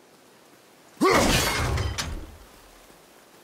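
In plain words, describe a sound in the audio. An axe whooshes through the air.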